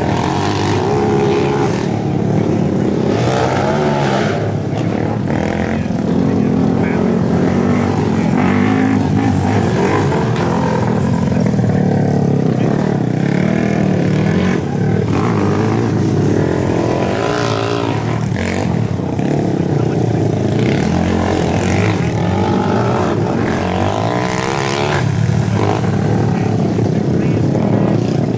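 A quad bike engine revs and buzzes loudly, rising and falling as the rider accelerates.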